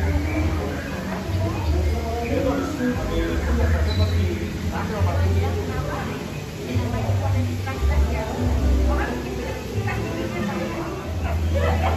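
Men and women talk quietly at nearby tables.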